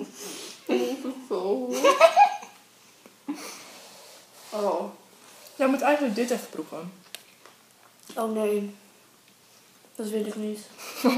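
A second young woman answers and laughs close by.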